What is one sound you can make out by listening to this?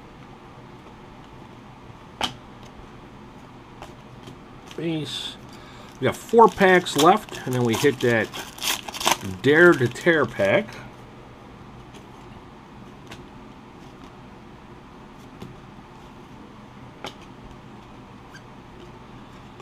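Stiff cards slide and tap against each other.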